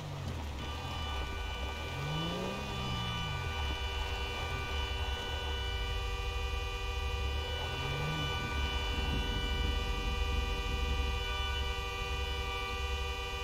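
A car engine rumbles low as the car drives slowly over gravel.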